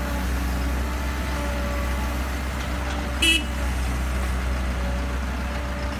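Soil and rocks thud into a truck bed.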